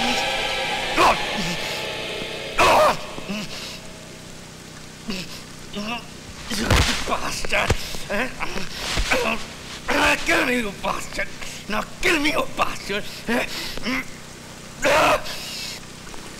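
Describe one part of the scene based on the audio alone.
Blows land with heavy thuds.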